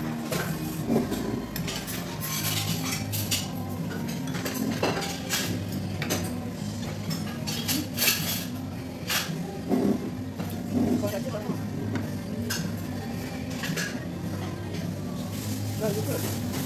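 Dishes and cutlery clink on a table.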